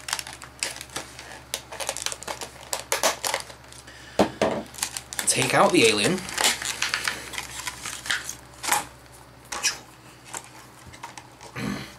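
Plastic packaging crinkles and rustles in a man's hands.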